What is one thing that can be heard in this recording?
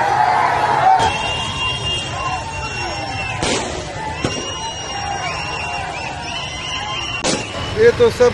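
Fireworks bang and crackle overhead.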